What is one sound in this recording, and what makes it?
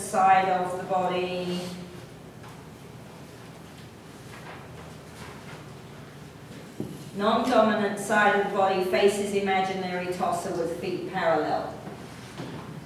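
A woman reads aloud nearby, pausing between phrases.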